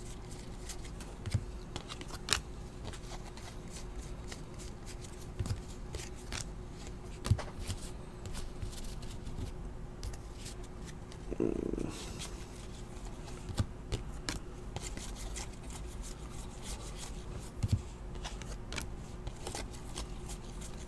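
Trading cards rustle and flick as they are shuffled through by hand.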